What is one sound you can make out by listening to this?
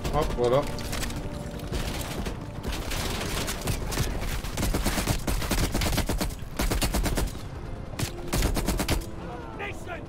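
Rapid gunfire bursts loudly and repeatedly.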